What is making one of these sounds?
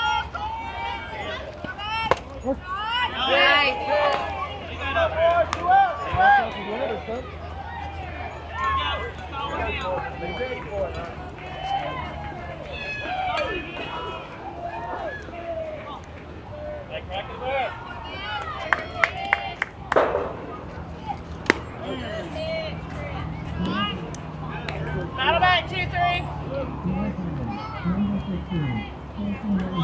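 Young girls shout and cheer loudly nearby, outdoors.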